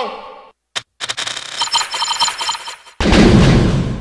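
Electronic chimes ring rapidly as game scores tally up.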